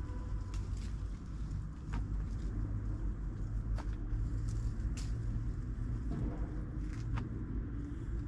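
Twigs snap sharply now and then.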